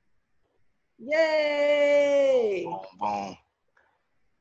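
A woman laughs over an online call.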